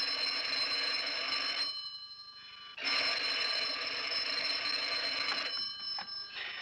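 A telephone bell rings loudly in bursts.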